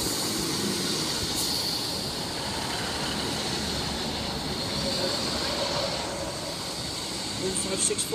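A train rumbles steadily past along the rails.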